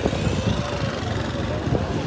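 A motorcycle engine rumbles past close by.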